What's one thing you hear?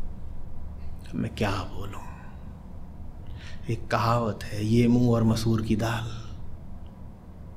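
A middle-aged man speaks calmly and close into a microphone.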